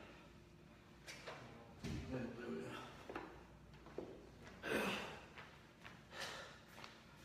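A man exhales sharply with effort in short bursts.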